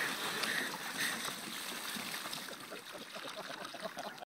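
Men laugh nearby.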